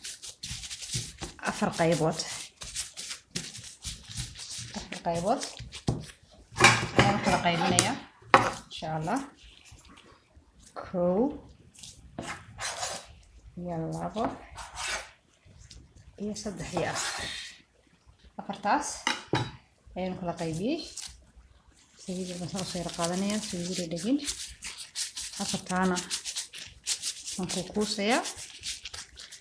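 Hands knead and roll soft dough.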